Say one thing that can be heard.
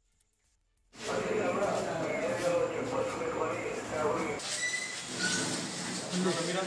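Several men murmur and talk nearby.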